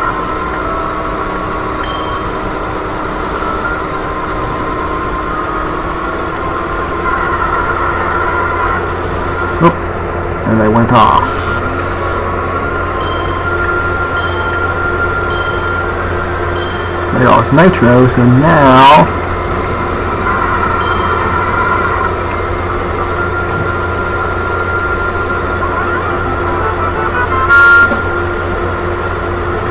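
A kart engine hums steadily as it races.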